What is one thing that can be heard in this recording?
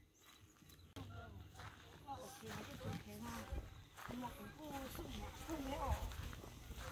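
Several young people talk casually at a distance outdoors.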